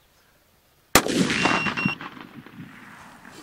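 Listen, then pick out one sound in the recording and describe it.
A rifle shot cracks close by and echoes across open land.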